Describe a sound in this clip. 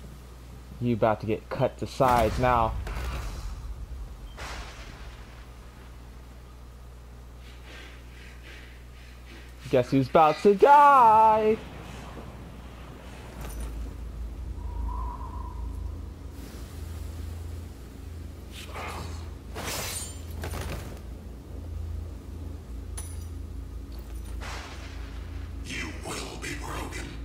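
A man speaks in a low, menacing voice.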